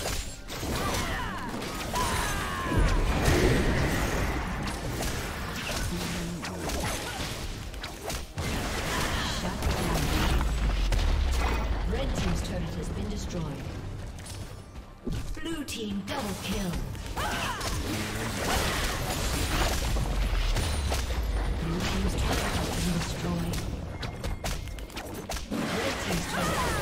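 Game combat sound effects clash, crackle and burst.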